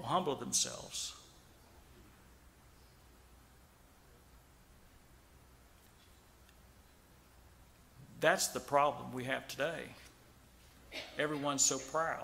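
A middle-aged man speaks slowly and earnestly into a microphone, with long pauses.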